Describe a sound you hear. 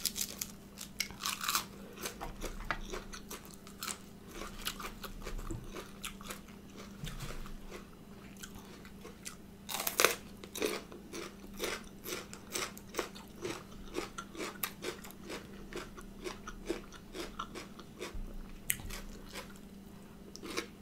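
A woman chews crisp food loudly and wetly, close to a microphone.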